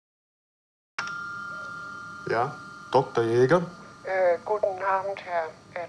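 An old radio plays through its loudspeaker.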